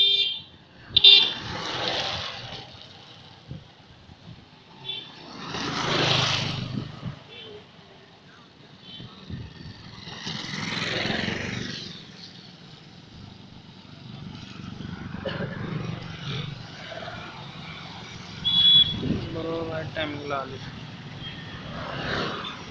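Motorcycles pass by one after another.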